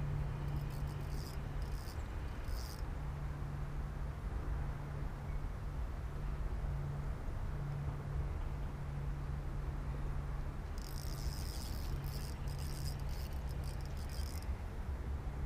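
A fishing reel clicks and whirs in short bursts as line is wound in.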